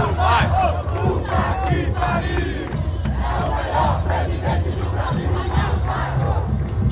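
A large crowd of fans sings and chants loudly outdoors.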